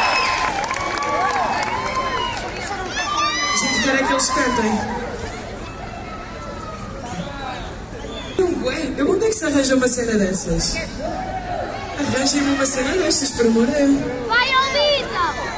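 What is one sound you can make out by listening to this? A woman sings into a microphone over the band.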